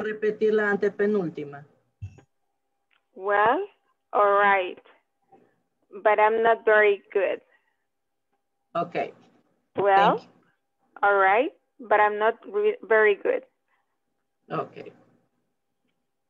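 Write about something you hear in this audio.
A woman speaks clearly in short phrases over an online call.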